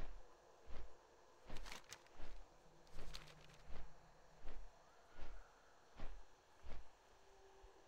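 A large bird's wings beat in a steady, heavy rhythm.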